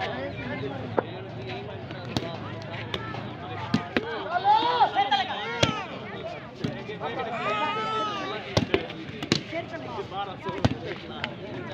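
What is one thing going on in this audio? A ball is struck with sharp thuds.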